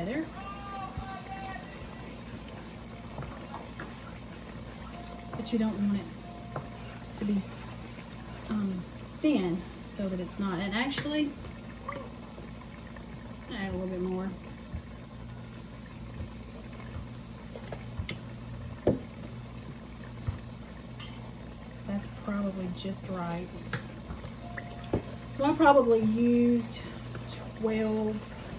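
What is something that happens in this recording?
A wooden spoon scrapes and stirs food in a pan.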